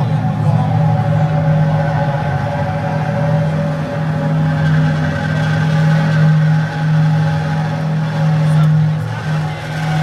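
A live band plays loud, droning music in a large echoing hall.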